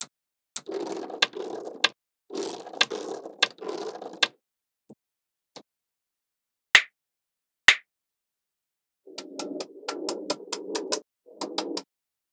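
Small magnetic balls click and rattle against each other as they are handled.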